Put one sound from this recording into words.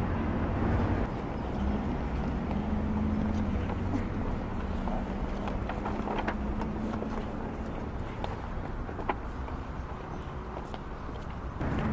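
Footsteps scuff on paving stones.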